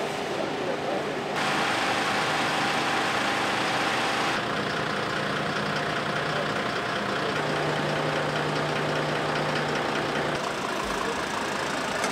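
A diesel engine idles nearby with a steady hum.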